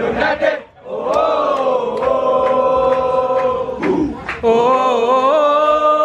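A crowd of young men sings loudly together in long drawn-out notes.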